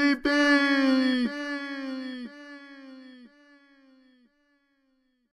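A large horn blows a series of long, falling notes that grow quieter each time.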